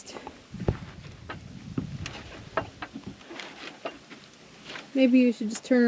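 A wooden door rattles and knocks as it is pushed.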